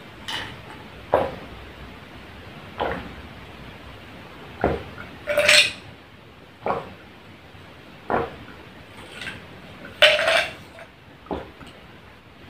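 A young man gulps a drink loudly, close by.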